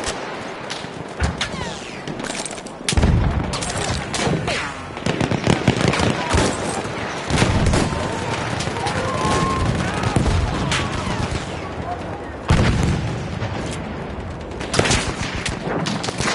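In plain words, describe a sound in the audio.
Rifle shots crack repeatedly, with a loud echoing ring.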